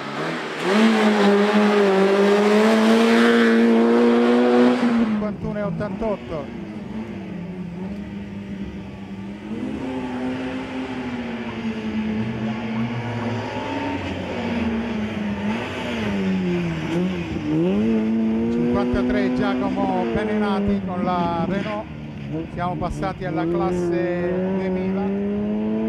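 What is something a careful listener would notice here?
A rally car engine revs hard and roars close by.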